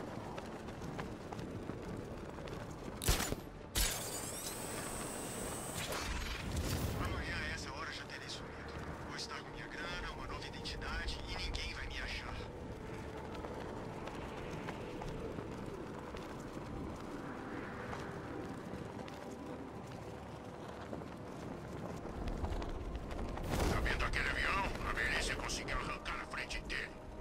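Wind rushes steadily past a gliding figure.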